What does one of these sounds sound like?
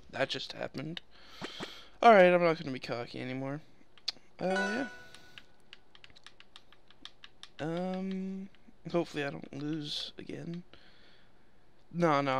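Menu sounds blip and chime.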